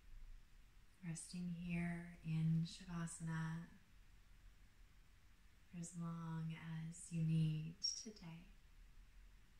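A woman speaks calmly and softly into a close microphone, in short phrases with long pauses.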